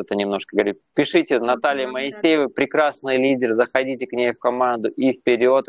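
A woman speaks cheerfully through an online call.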